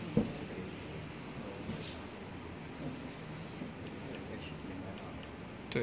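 Several men talk quietly in the background.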